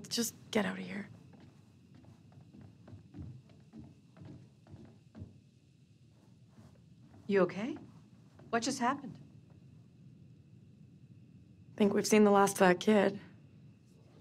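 A young woman speaks quietly and tensely nearby.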